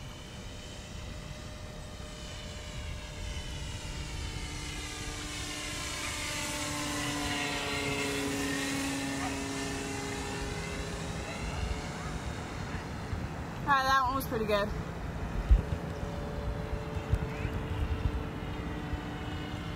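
A small propeller plane drones overhead, growing louder as it passes and then fading away.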